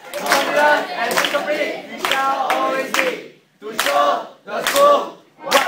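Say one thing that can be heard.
A group of young men and women chant loudly together in unison.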